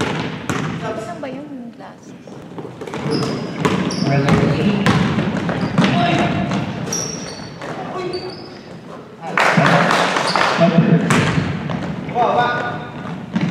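A basketball bounces on the floor in a large echoing gym.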